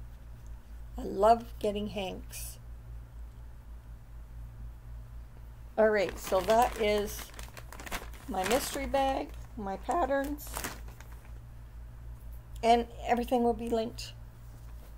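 An older woman talks calmly and close to the microphone, in short bursts.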